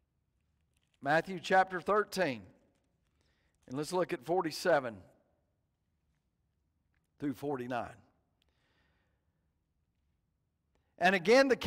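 A middle-aged man reads aloud calmly through a microphone, pausing between phrases.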